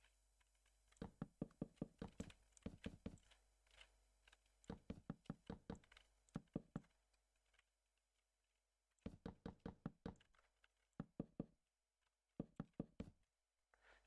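Wooden blocks are placed one after another with quick soft knocks.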